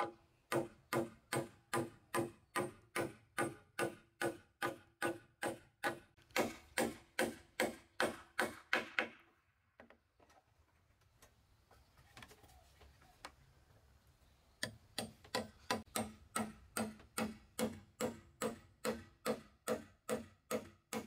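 A hammer drives a nail into a wooden beam with rapid, even blows.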